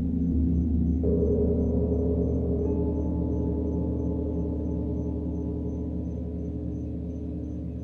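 A new bowl tone rings out and slowly fades.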